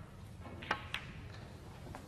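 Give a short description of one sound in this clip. Snooker balls knock together with a crisp clack.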